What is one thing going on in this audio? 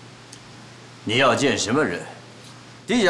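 A middle-aged man asks a question sternly.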